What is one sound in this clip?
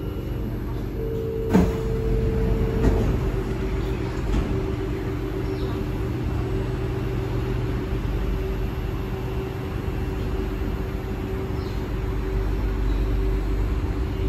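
An electric metro train hums while standing at a platform.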